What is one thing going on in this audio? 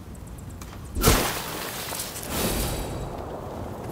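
A sword swings and strikes with a heavy whoosh.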